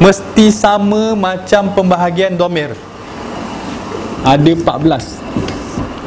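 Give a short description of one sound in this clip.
A man lectures in a calm, clear voice in a room with a slight echo.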